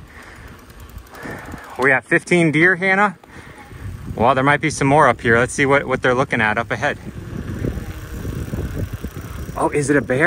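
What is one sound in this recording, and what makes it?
Bicycle tyres roll over a wet paved road.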